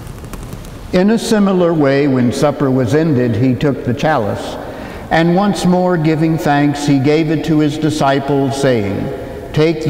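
An elderly man chants in a steady, sung voice through a microphone in a large echoing room.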